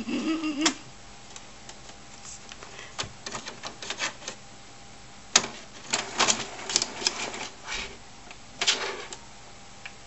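A cat paws at a printer's buttons with soft taps.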